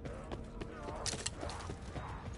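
A weapon clicks and rattles as it is swapped.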